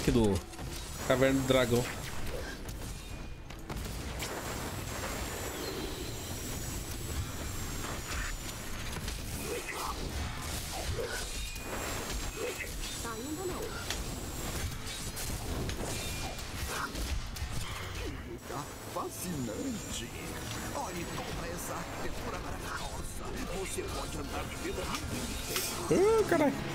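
Spells crackle and blast with electric zaps.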